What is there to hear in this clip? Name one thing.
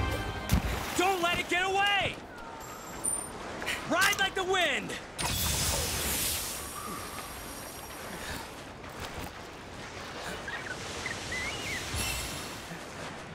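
A blade swings and strikes with sharp whooshing hits.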